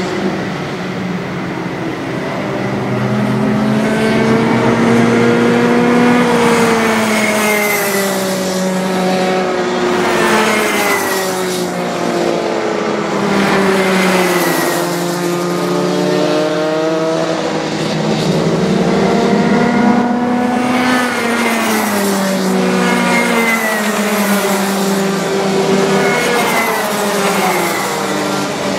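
Kart engines buzz loudly, rising and falling in pitch as they race past.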